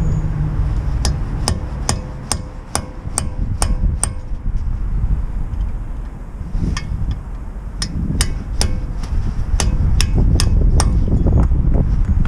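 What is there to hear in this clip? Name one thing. A ratchet clicks rapidly as a wheel bolt is turned.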